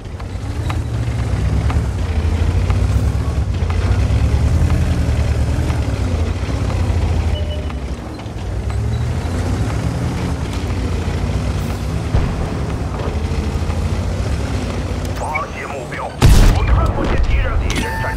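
A tank engine rumbles and clanks steadily.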